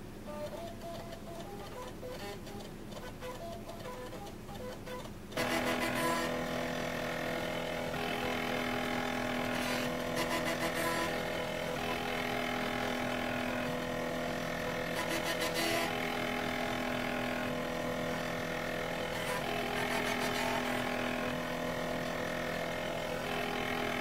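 Stacked computer drives whir and hum steadily, growing louder partway through.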